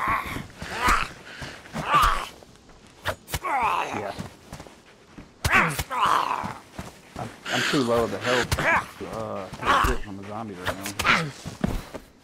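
A spear stabs into flesh with heavy thuds.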